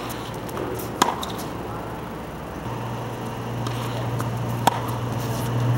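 Tennis rackets strike a ball with sharp pops.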